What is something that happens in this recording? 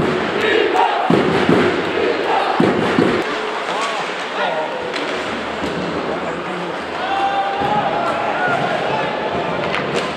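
A crowd in a large echoing arena cheers and chatters.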